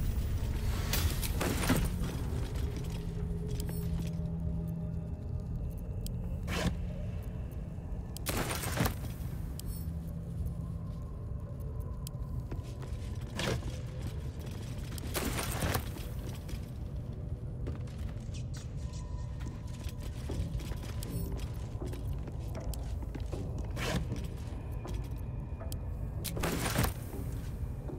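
Short menu clicks and chimes sound now and then over a low, steady rumble.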